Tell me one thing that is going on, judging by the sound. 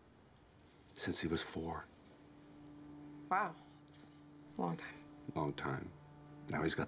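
A middle-aged man speaks calmly and seriously at close range.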